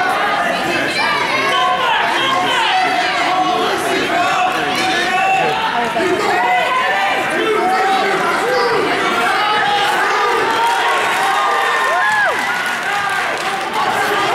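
A crowd of spectators cheers and shouts loudly in a large echoing gym.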